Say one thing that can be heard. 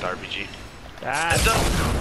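Gunshots blast loudly.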